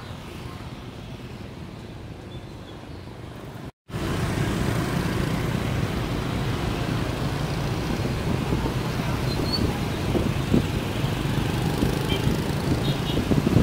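Many motorbike engines hum and buzz in busy street traffic.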